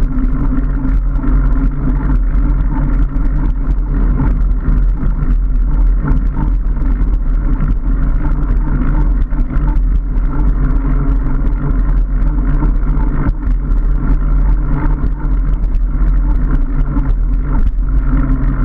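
Bicycle tyres hum and rattle over a rough road.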